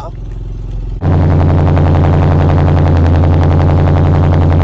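A car engine revs up and its exhaust roars loudly and steadily up close.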